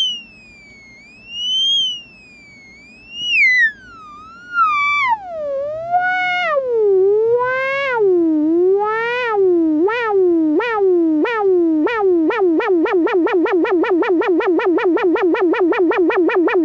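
A synthesizer tone swoops up and down, sinking lower and pulsing faster until it warbles rapidly.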